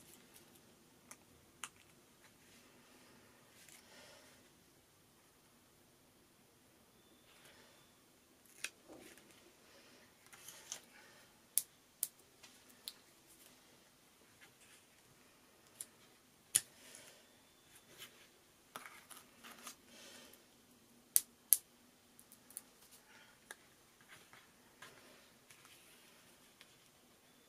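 Small paper pieces rustle and tap on a table as hands handle them.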